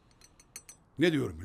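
An older man speaks briefly close by.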